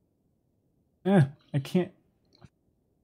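A man exclaims briefly, close to a microphone.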